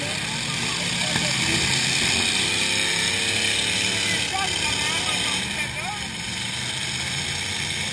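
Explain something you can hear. Car engines rev loudly.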